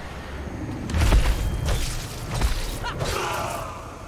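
Heavy blows land with deep thuds.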